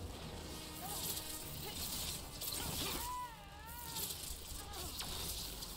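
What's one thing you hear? Magic blasts crackle and whoosh.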